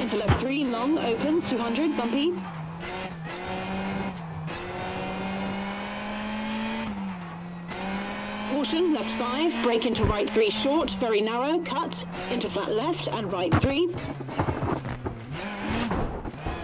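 A rally car engine roars steadily, shifting gears as it speeds along.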